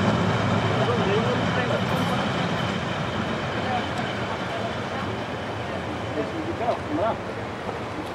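Train wheels squeal on a curve.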